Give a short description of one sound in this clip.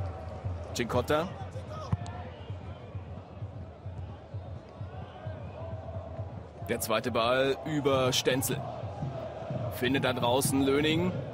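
A large crowd murmurs and chants in a stadium.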